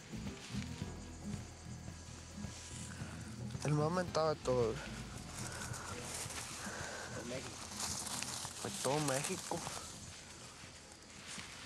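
Leafy plants rustle as they are handled.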